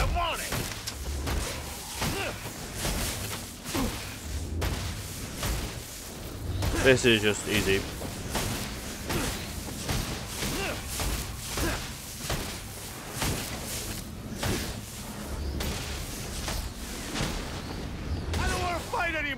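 Punches and kicks land with heavy thuds again and again.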